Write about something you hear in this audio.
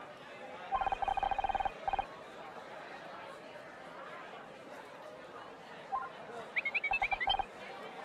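Quick electronic blips chatter in rapid bursts.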